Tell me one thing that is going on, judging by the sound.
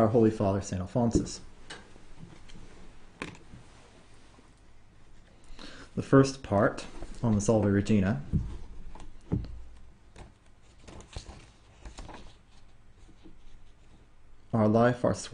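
A young man reads aloud calmly and close to a microphone.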